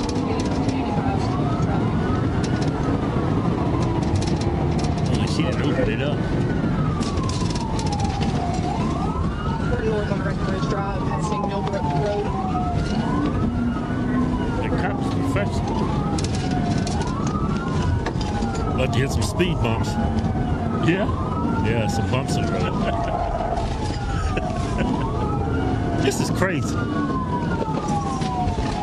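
A car engine roars as it speeds along a road.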